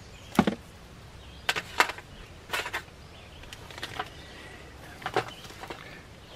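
Small plastic parts click and clatter on a table.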